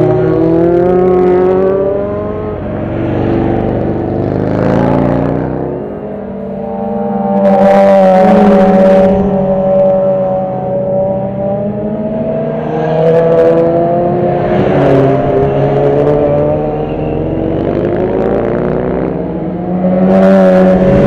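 Motorcycle engines rev and roar as bikes speed past one after another.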